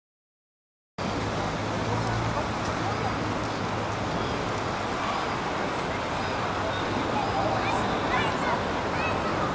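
A crowd murmurs outdoors in a busy open space.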